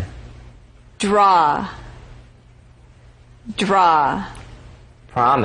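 A young woman pronounces single words clearly into a microphone.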